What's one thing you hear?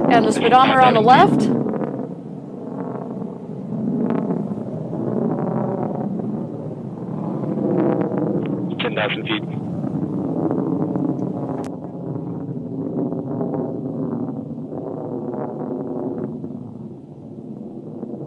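A rocket engine roars with a deep, steady rumble.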